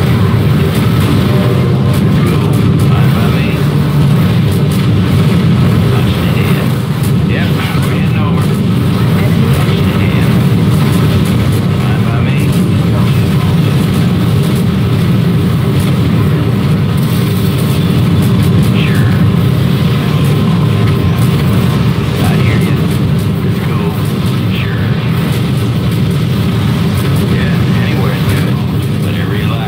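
Jet aircraft engines roar steadily overhead.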